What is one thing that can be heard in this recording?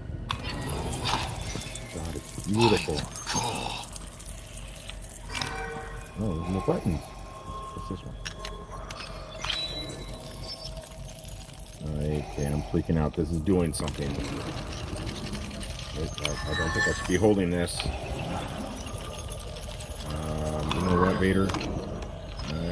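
A man speaks in a deep, slow voice.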